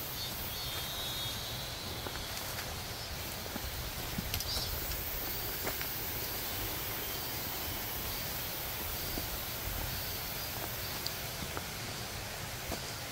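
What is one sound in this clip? Footsteps crunch through dry leaves and undergrowth.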